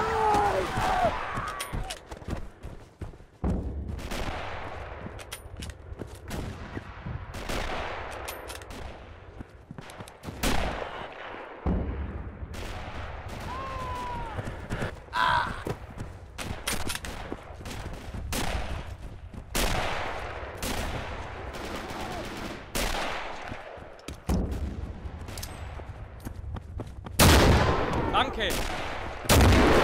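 Rifle shots crack repeatedly nearby and in the distance.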